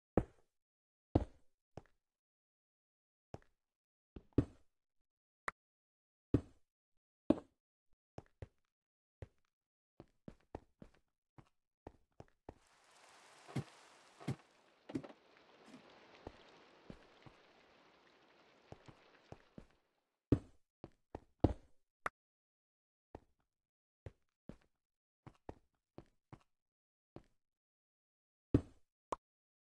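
Stone blocks knock sharply as they are placed one after another.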